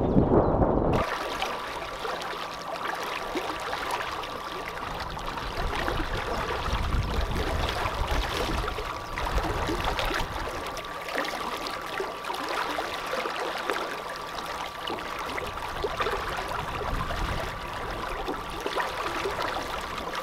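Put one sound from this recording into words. An electric outboard motor hums steadily.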